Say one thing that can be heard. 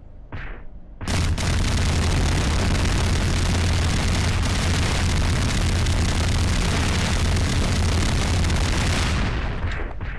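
A weapon fires in a loud, continuous roaring blast.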